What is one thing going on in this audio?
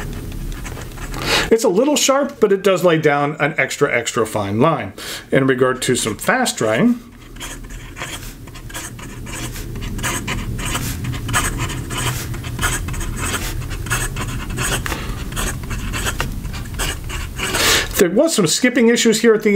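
A fountain pen scratches softly across paper.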